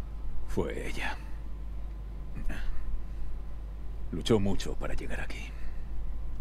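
A man speaks calmly and quietly through a microphone.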